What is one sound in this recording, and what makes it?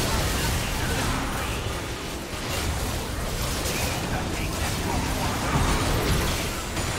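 Game spell effects whoosh and crackle in a fast battle.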